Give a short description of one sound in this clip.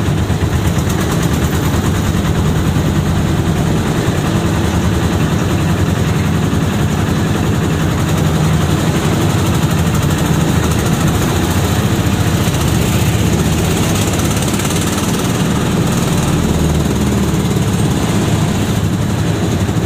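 Motorcycles buzz past.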